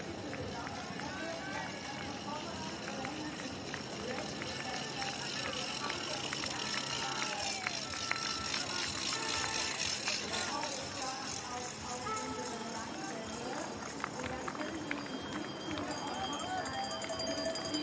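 A crowd of spectators cheers and shouts nearby outdoors.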